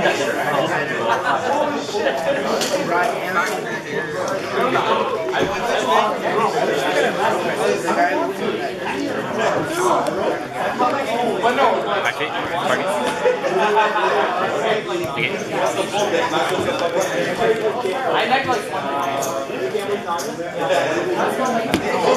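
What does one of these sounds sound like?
Young men talk nearby with animation.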